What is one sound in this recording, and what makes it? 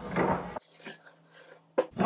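A hammer knocks on metal.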